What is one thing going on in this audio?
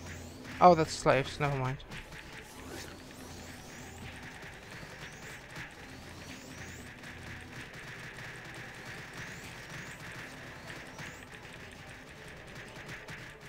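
Magic spells crackle and flash repeatedly in battle.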